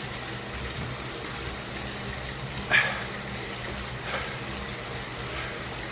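An indoor bike trainer whirs steadily.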